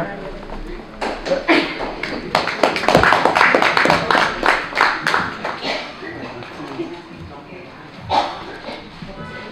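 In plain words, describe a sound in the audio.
A group of men and women speak or sing together in unison.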